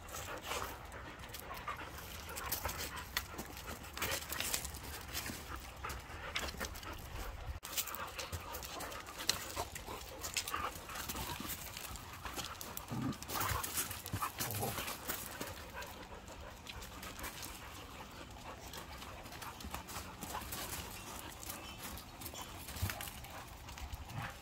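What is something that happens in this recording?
A dog growls playfully while wrestling.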